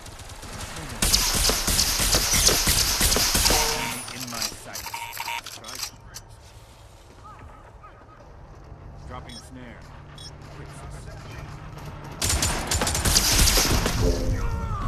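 Video game guns fire in rapid bursts.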